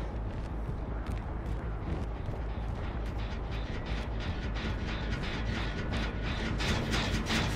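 Heavy footsteps tread steadily through grass.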